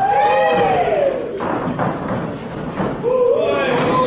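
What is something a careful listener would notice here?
Bodies slam hard onto a mat.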